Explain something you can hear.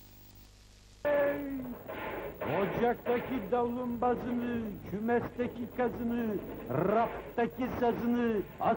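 A young man sings loudly and expressively close by.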